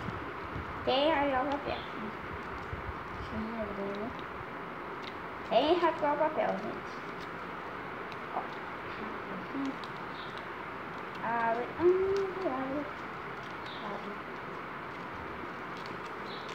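Foil crinkles as an egg is unwrapped.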